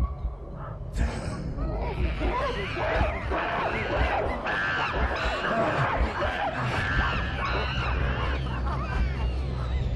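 Chimpanzees screech and hoot wildly.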